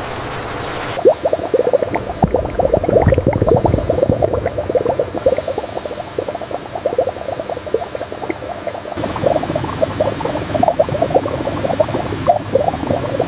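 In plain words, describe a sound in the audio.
Thick liquid bubbles and gurgles inside a tank.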